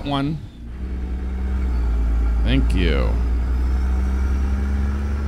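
A truck engine rumbles steadily at a low pitch.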